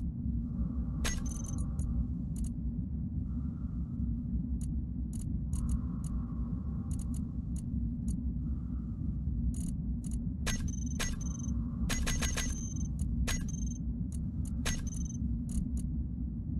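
Soft interface clicks sound as buttons are pressed.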